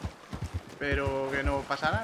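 A horse's hooves splash through shallow water.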